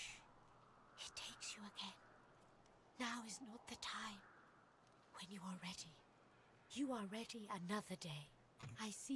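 A young woman talks casually and animatedly close to a microphone.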